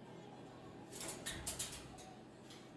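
A cockatoo flaps its wings.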